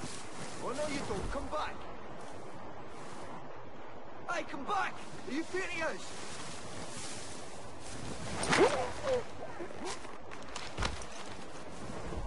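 Leaves and branches rustle as someone pushes through a bush.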